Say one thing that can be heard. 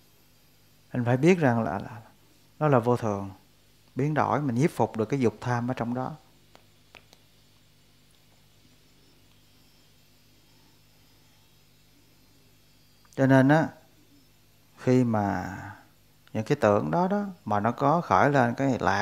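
A man reads aloud calmly into a close microphone, in short phrases with pauses.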